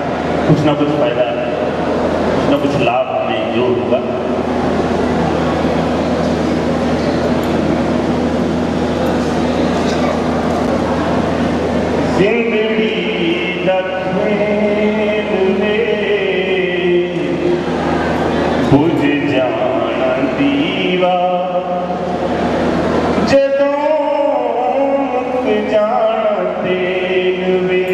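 A middle-aged man speaks steadily into a microphone, amplified through loudspeakers.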